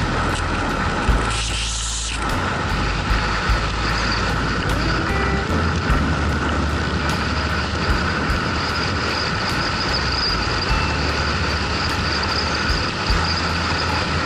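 Wind roars loudly against a moving vehicle.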